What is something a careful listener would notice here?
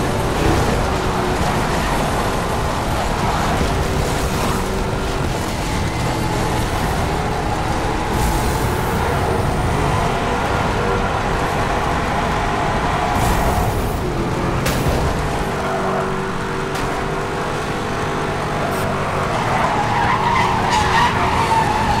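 Tyres skid and screech on a dirt road.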